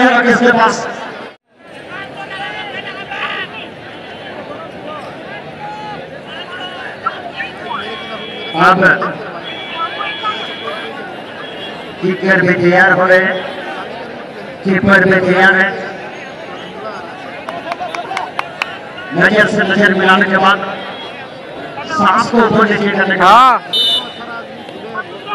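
A large crowd of spectators shouts and chatters outdoors.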